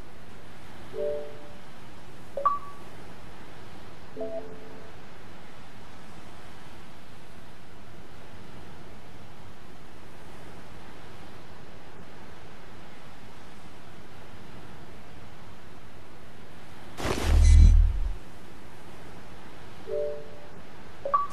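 An electronic notification chime sounds a few times.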